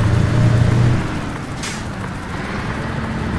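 A truck engine briefly drops in pitch during a gear change.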